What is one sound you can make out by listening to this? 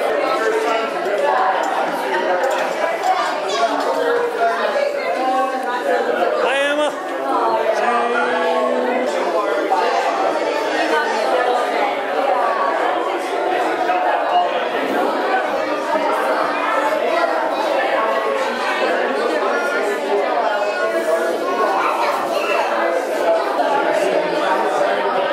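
Many men, women and children chatter at once in a large room.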